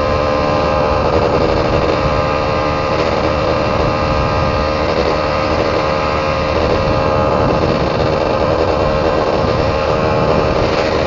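Wind rushes past loudly and steadily.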